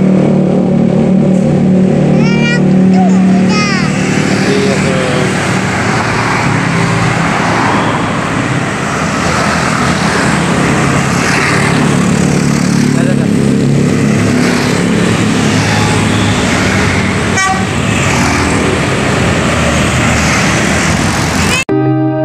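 Traffic rumbles steadily along a road outdoors.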